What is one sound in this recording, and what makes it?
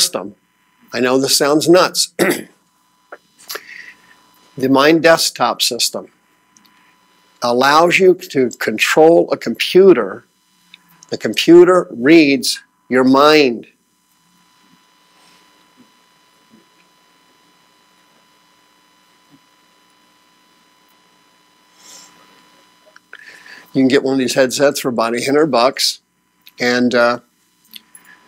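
A man speaks calmly to an audience through a microphone in a large room.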